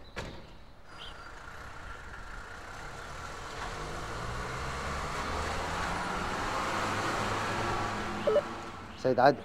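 A car engine runs and the car drives off.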